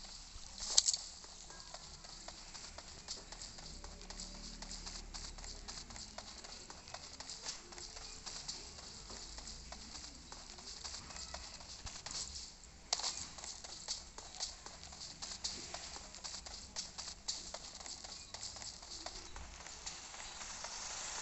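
Footsteps patter quickly on a hard surface.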